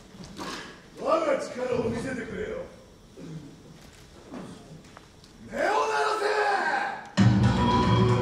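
A second man shouts theatrically on a stage through a microphone.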